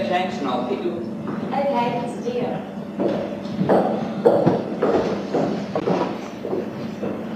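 Footsteps thud across a stage.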